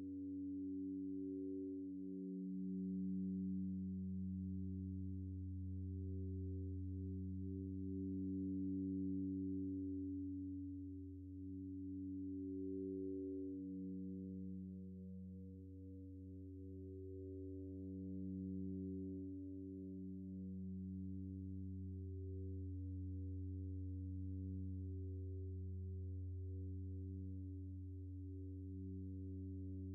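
A deep bass tone hums steadily underneath.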